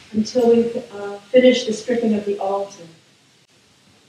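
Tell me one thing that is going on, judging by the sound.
A man sings a short chant into a microphone, echoing in a large hall.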